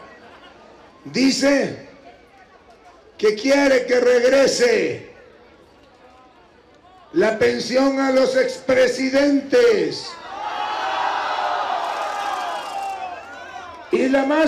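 An elderly man speaks forcefully into a microphone, heard through loudspeakers outdoors, in bursts with pauses.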